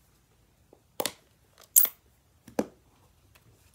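A plastic ink pad lid clicks and snaps open.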